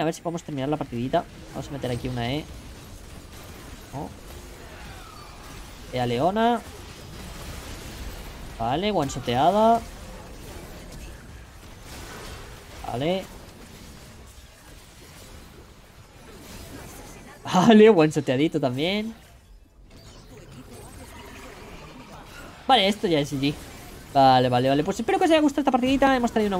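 A young man talks with animation in short bursts, close to a microphone.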